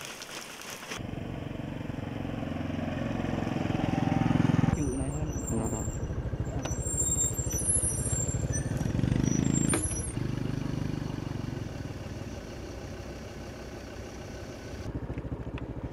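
A motorbike engine hums as the motorbike rides past.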